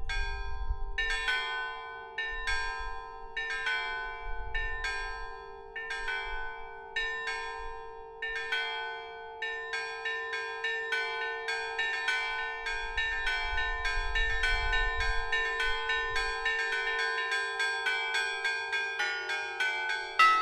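Large bells ring out in a melody, quickening as it goes.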